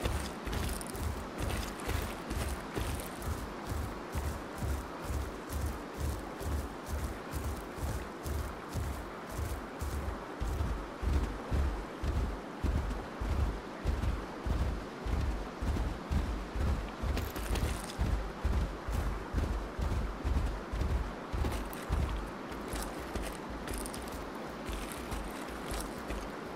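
Heavy footsteps of a large creature thud steadily on the ground.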